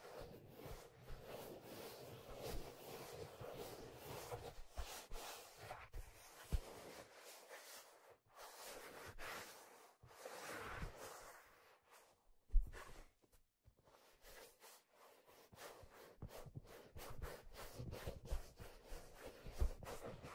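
Hands rub, tap and crinkle a leather hat close to a microphone.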